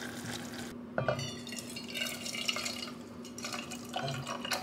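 Soup pours into a container.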